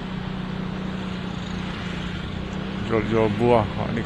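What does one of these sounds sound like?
Other motorbikes ride past.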